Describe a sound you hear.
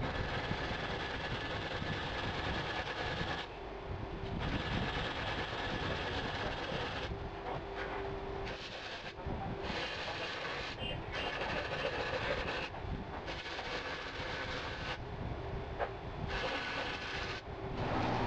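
A cloth rubs and scrapes against a metal bar.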